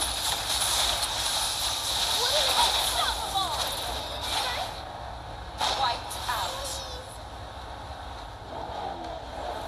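Game spell effects crackle and whoosh in a battle.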